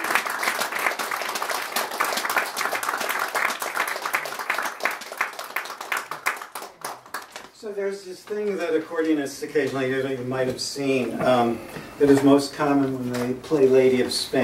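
An accordion plays a lively tune up close.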